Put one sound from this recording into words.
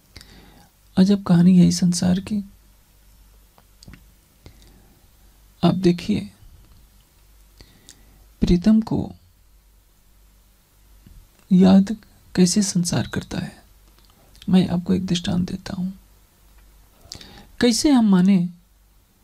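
An elderly man speaks slowly into a microphone, with pauses.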